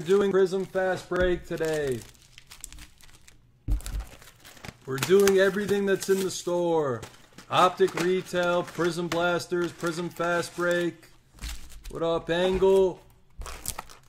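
Card packs rustle and clack as hands handle them.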